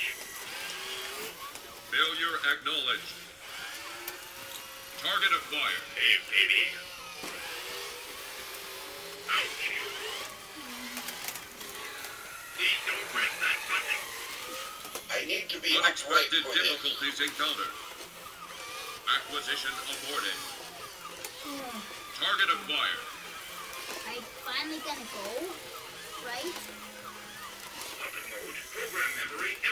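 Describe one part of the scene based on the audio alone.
Toy robots whir and buzz as they walk.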